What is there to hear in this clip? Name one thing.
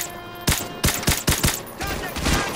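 Sharp rifle shots crack in quick succession.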